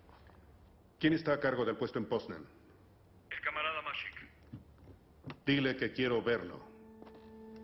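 A middle-aged man speaks firmly into a telephone.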